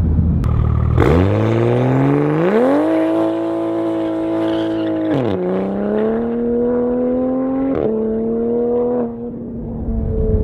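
A sports car engine roars loudly and revs through the gears as it speeds away.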